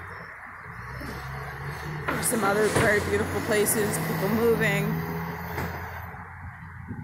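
A truck engine rumbles as the truck drives past.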